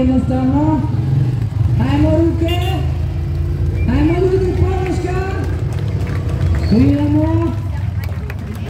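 A motorcycle engine revs hard in repeated bursts close by.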